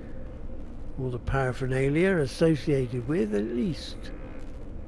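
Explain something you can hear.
A man talks with animation through a microphone, close by.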